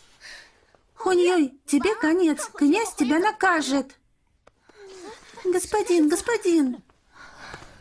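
A young woman speaks sharply, scolding.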